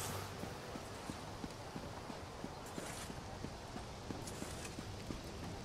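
Footsteps tap quickly on stone.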